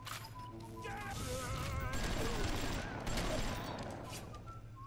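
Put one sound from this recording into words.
A machine gun fires in short rapid bursts.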